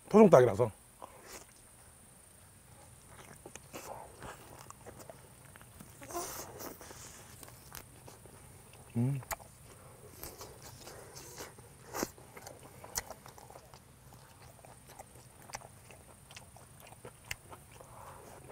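A man chews and slurps food with wet, smacking sounds.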